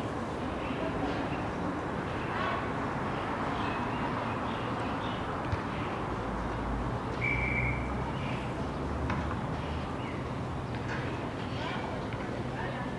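Young women call out to each other in the distance.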